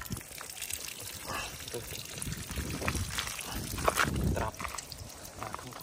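Water splashes onto the ground as a bucket is tipped.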